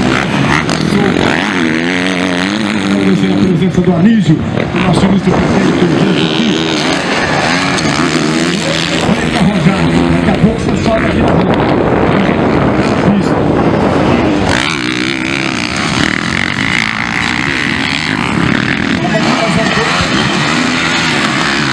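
Dirt bike engines rev and whine loudly as motorcycles race past.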